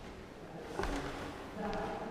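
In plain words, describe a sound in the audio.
Footsteps tread on a wooden floor in a large echoing hall.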